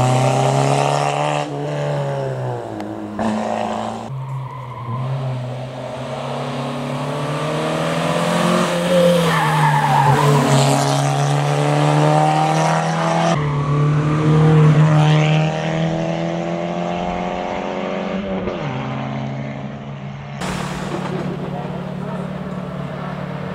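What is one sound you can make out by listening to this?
A rally car engine roars loudly and revs up and down through the gears.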